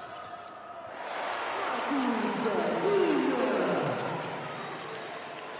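A crowd cheers loudly in a large echoing hall.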